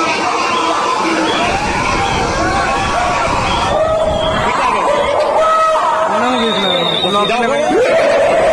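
A crowd sings loudly together.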